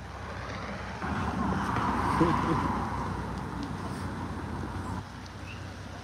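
A car drives slowly past nearby.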